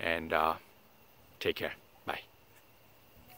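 An older man speaks briefly and calmly, close by.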